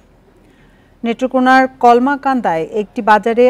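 A young woman speaks calmly and clearly into a microphone, like a newsreader.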